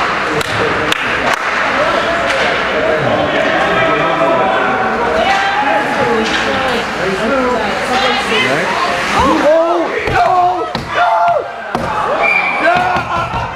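Spectators cheer and shout excitedly in an echoing rink.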